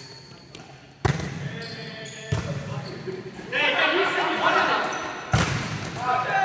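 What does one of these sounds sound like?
A volleyball is struck with sharp slaps in an echoing hall.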